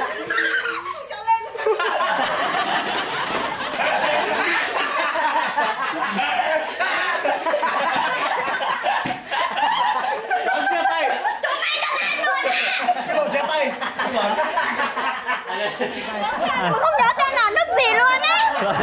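Young people laugh and shout excitedly close by.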